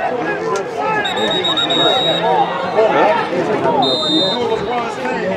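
A referee's whistle blows shrill blasts.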